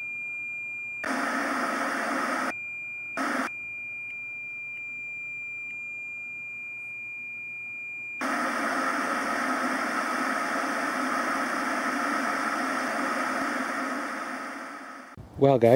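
Television static hisses loudly in bursts.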